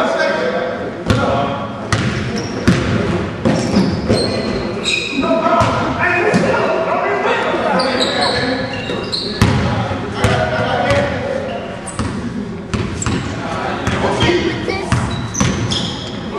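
Young men shout and call out to each other.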